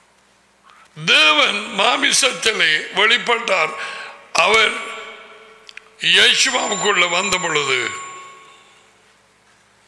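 A middle-aged man speaks forcefully into a close microphone, with a slight echo.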